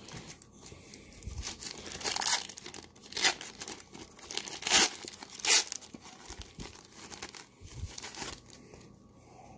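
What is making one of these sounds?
A foil wrapper crinkles and tears open close by.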